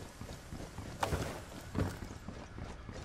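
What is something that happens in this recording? Something thumps and scrapes while climbing through a window.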